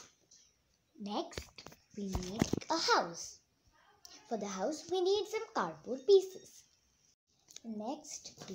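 A young girl speaks close by with animation.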